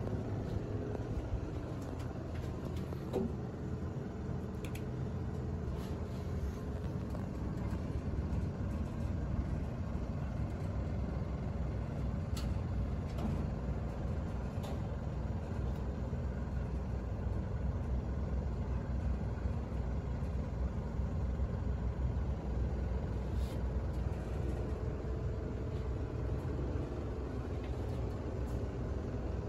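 An elevator hums and rumbles steadily as it rises.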